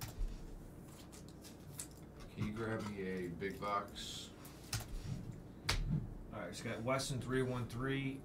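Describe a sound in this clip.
Cards click and shuffle as they are handled.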